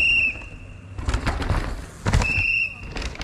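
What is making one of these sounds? A mountain bike lands with a thud after a jump.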